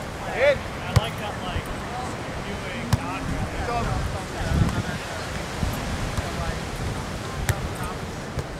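A volleyball is hit with a sharp slap.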